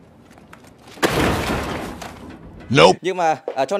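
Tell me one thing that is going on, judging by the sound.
Something heavy crashes into a metal bin with a loud clatter.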